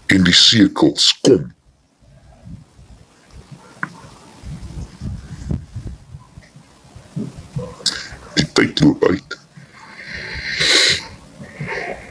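A middle-aged man speaks close to a microphone with intensity, pausing between phrases.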